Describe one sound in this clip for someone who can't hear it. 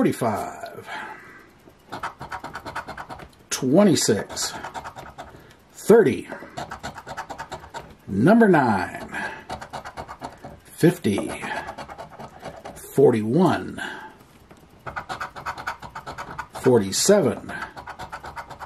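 A coin scratches rapidly across a card.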